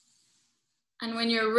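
A woman speaks loudly through an online call.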